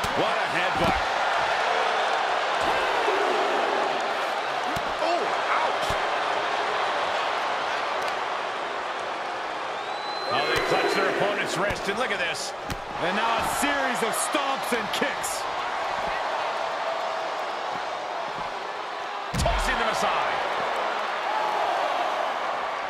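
A large crowd cheers and roars.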